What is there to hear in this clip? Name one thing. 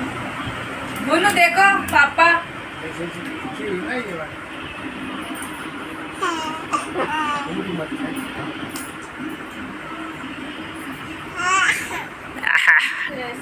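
A small child babbles in a high voice close by.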